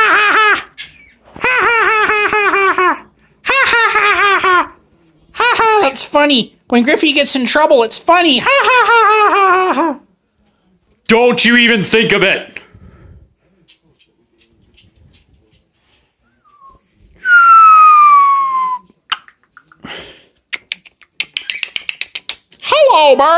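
A parrot squawks loudly and repeatedly, close by.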